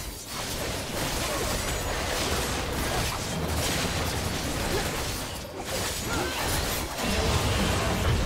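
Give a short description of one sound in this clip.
Video game spell effects crackle, whoosh and boom in a busy battle.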